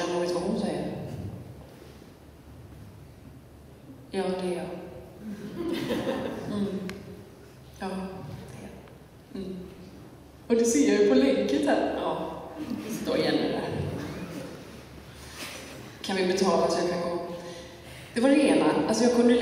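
A young woman sings in a large echoing hall.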